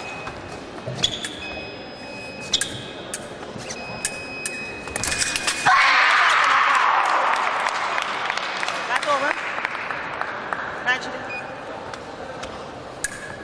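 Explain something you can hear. Fencing blades click and clash together.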